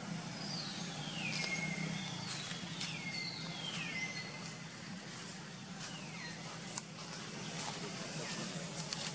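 Dry leaves rustle under monkeys moving about.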